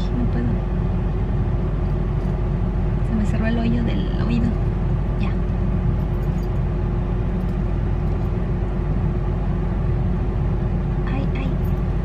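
A car engine hums steadily inside a car.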